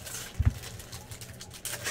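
Cards slide and flick against each other as they are shuffled.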